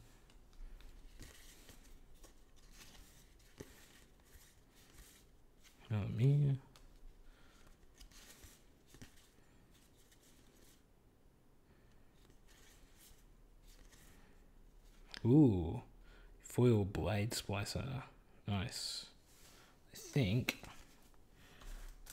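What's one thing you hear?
Playing cards rustle and slide against each other in a hand.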